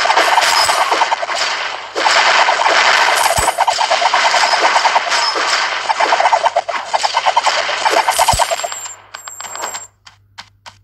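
Rapid game gunfire and explosions crackle loudly.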